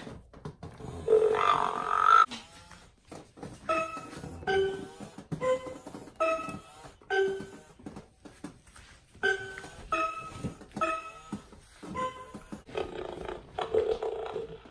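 An animatronic toy dinosaur roars through a small loudspeaker.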